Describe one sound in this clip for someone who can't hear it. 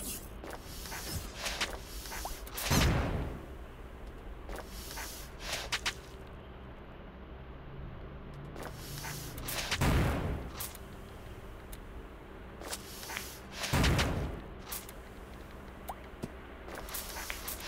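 Short video game sound effects chime and whoosh.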